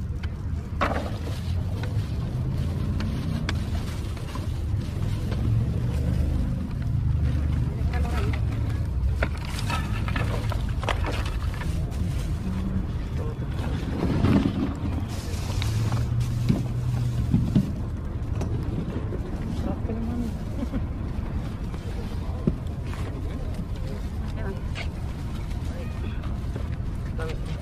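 Plastic bags and clothes rustle as they are sorted by hand.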